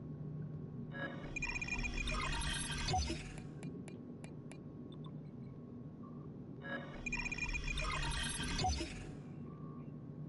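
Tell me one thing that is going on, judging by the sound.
A rising electronic whirr plays as a game upgrade charges.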